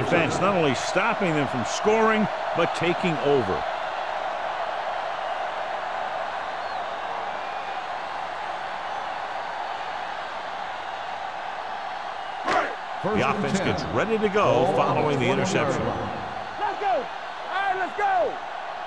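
A stadium crowd cheers and murmurs steadily.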